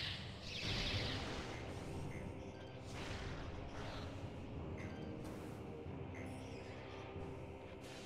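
An arm cannon fires blasts.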